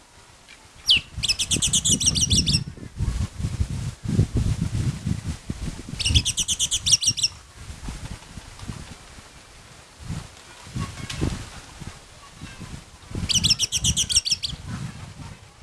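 A bird sings in short bursts of rapid, high, repeated chirps.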